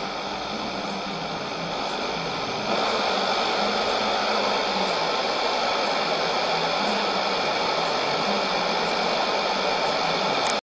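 A shortwave radio hisses and crackles with static and a faint, fading broadcast.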